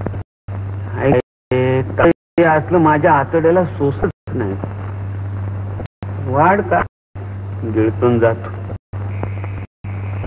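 A man speaks in a pleading, tearful voice.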